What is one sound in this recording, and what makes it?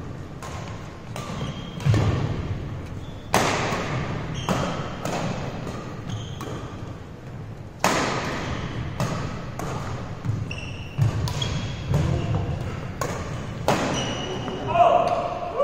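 Sneakers squeak sharply on the hard floor.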